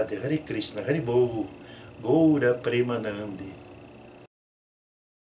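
An elderly man speaks calmly into a close microphone.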